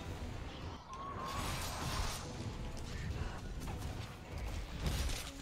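Huge wings beat with deep, heavy whooshes.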